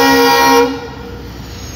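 A locomotive horn blares briefly.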